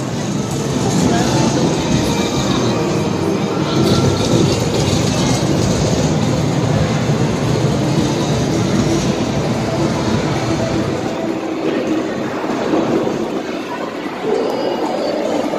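Arcade machines chime and play electronic music all around.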